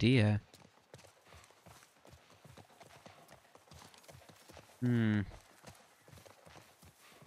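Footsteps swish through tall grass at a steady walking pace.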